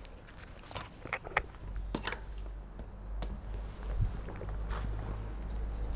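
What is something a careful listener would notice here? Bicycle tyres roll over paving stones.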